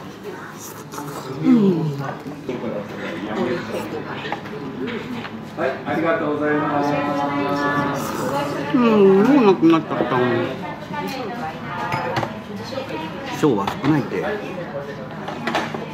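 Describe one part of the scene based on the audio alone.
A man slurps noodles loudly.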